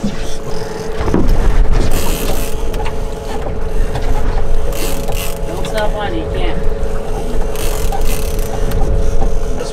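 A fishing reel ratchets as a man winds it.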